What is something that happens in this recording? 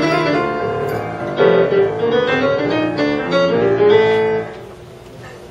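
A piano plays a lively tune.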